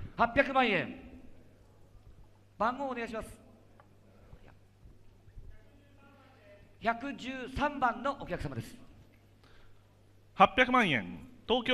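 A man calls out rapidly over a loudspeaker in a large echoing hall.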